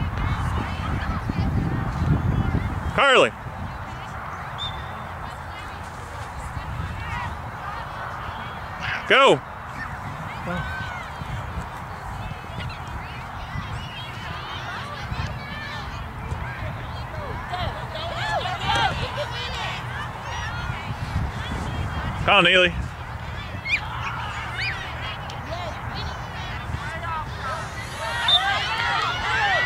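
Adult spectators, men and women, chat nearby outdoors.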